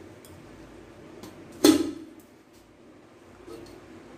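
A metal lid clatters as it is lifted off a steel bowl.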